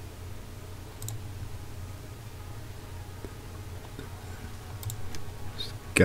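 Soft game menu clicks sound.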